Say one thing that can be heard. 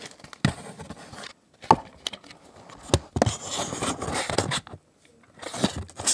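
Paper crinkles and rustles close by.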